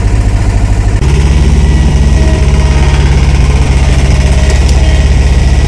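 A small loader's engine revs up to a deeper, heavier roar.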